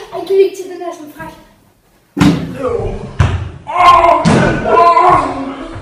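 Feet thump on soft mats.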